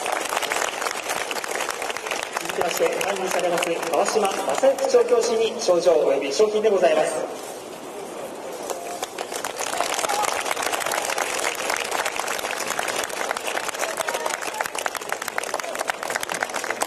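A crowd claps and applauds outdoors.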